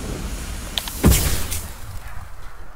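Steam bursts out with a loud hiss.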